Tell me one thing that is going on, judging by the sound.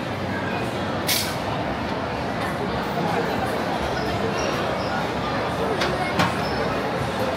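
Metal utensils clink against a steel pot.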